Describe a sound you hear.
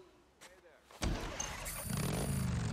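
A motorcycle engine rumbles.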